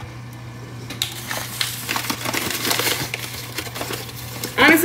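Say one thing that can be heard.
Flour rustles in a paper bag.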